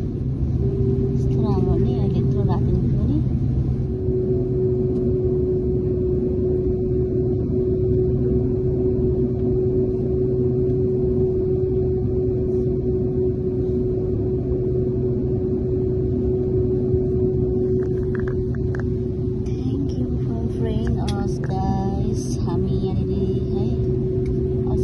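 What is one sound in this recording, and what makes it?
A young woman speaks quietly close by.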